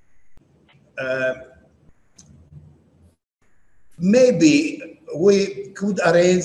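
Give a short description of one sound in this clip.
An elderly man speaks with animation through an online call.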